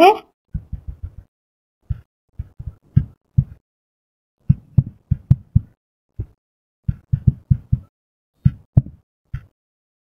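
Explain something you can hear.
Keys on a touchscreen keyboard tap and click quickly.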